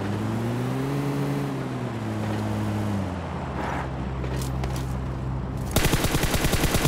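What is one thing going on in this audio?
An off-road vehicle's engine hums and revs, its pitch rising and falling.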